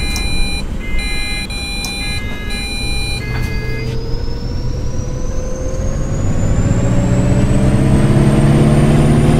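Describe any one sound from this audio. A bus engine revs up as the bus pulls away, its whine rising steadily in pitch.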